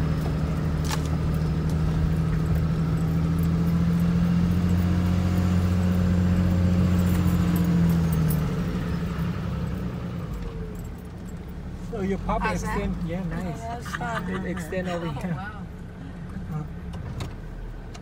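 A vehicle engine hums steadily from inside the cab, louder at first and then easing off.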